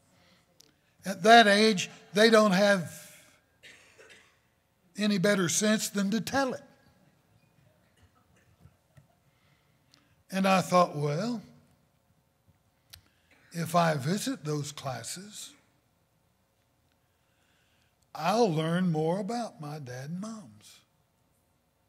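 An older man speaks with emphasis into a microphone, in short bursts with long pauses.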